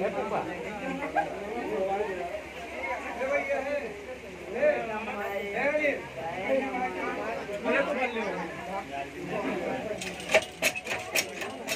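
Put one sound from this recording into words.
A crowd of men talk loudly over one another close by.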